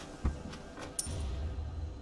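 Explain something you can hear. A small metal coin clinks as it is picked up.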